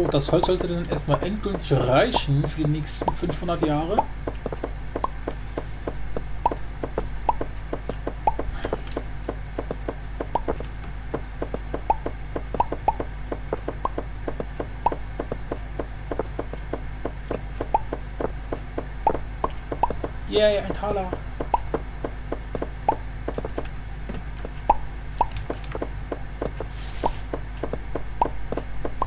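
Game blocks crack and thud as they are dug out and placed.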